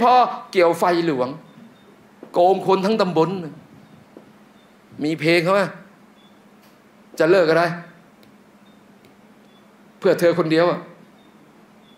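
A man speaks forcefully into a microphone in short bursts with pauses between them.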